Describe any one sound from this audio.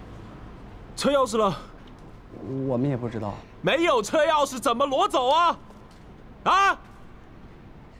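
A man shouts angrily, close by.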